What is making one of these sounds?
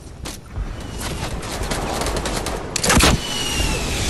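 A rocket whooshes through the air.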